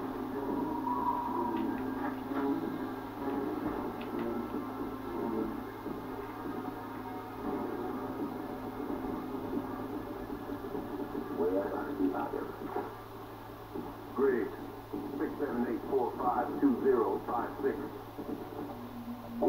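Gunshots from a video game ring out through a small speaker.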